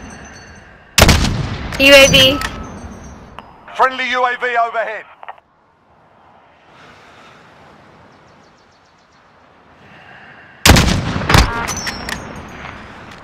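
A rifle fires a loud shot that echoes and rolls away.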